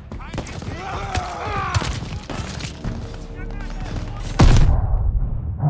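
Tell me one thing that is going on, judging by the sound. Gunshots crack close by.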